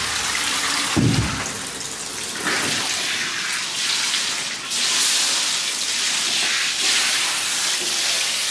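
Water runs from a tap into a metal sink.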